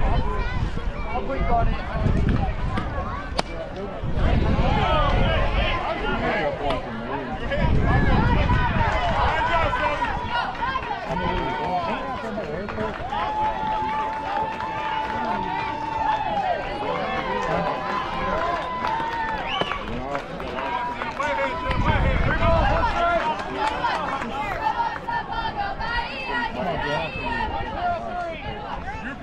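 Young girls shout and chant outdoors across an open field.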